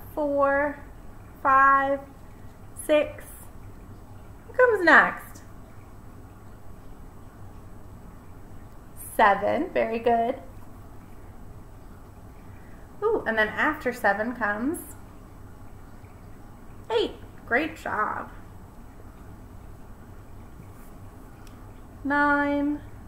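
A young woman speaks close to a microphone in short, lively phrases with pauses.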